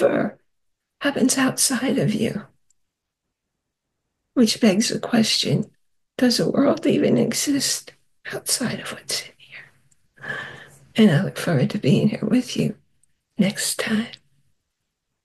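A middle-aged woman speaks warmly and with animation into a microphone, heard over an online call.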